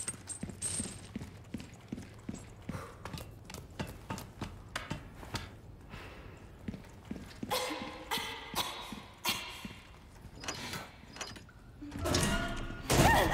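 Footsteps thud on a hard floor at a steady pace.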